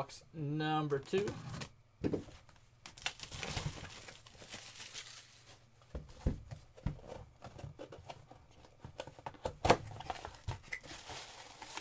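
Cardboard scrapes and rustles as a box is handled and opened.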